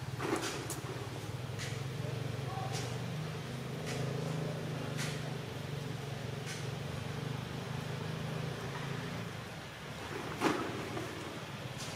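Dry leaves rustle under small feet.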